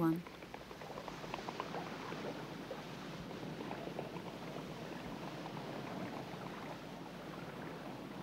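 Large birds flap their wings as they take off.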